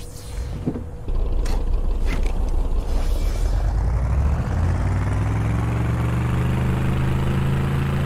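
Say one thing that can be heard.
A vehicle engine starts up and revs higher as it drives off.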